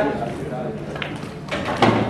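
A cue strikes a pool ball with a sharp click.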